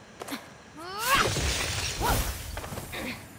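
A whooshing dash sweeps past.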